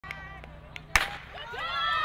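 A starting pistol fires a single sharp shot.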